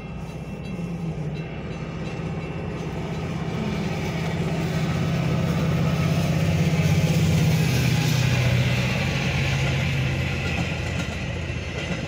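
A diesel commuter locomotive roars past.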